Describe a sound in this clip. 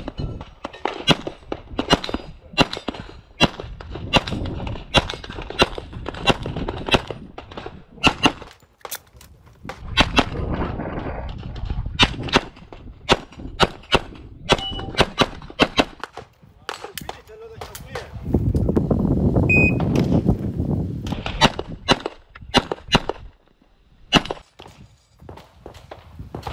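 Pistol shots crack in quick bursts outdoors.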